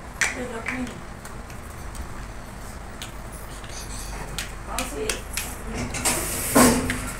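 Young children chatter nearby.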